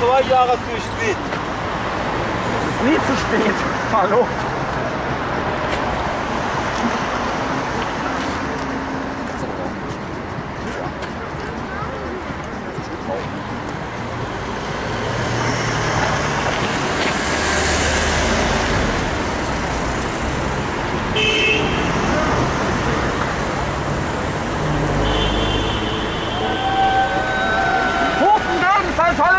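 Traffic hums steadily outdoors on a city street.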